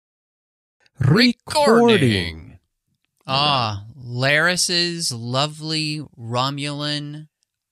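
A man speaks expressively, close to a microphone.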